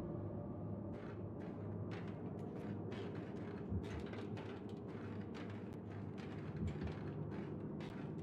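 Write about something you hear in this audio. Light footsteps patter on a hard tiled floor.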